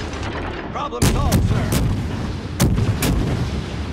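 Shells explode with deep blasts.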